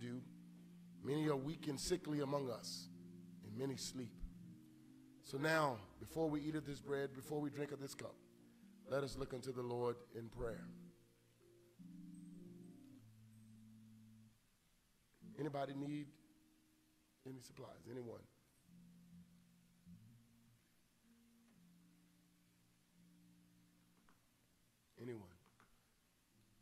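A man speaks slowly and with emphasis through a microphone.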